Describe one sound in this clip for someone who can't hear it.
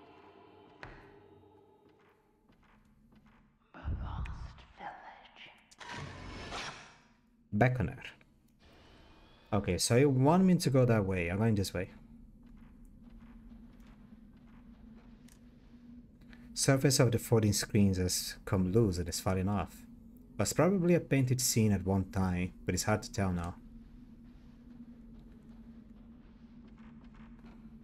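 Footsteps creak slowly on wooden floorboards.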